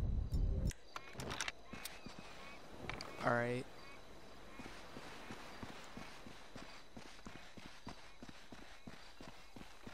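Footsteps crunch steadily on icy ground.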